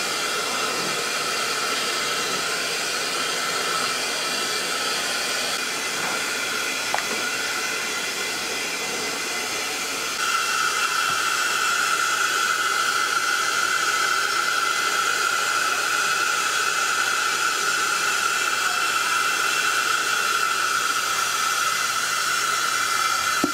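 Steam hisses steadily from a cooker.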